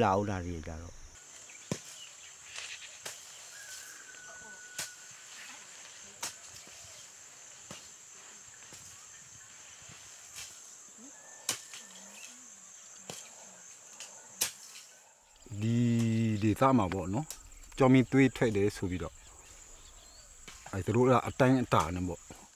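A hoe thuds into dry soil.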